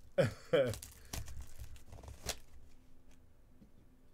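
Plastic wrap crinkles as hands grip it.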